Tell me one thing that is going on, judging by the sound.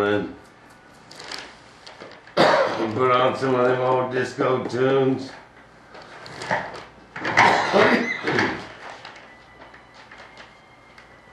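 A tool scrapes and spreads paste over a board.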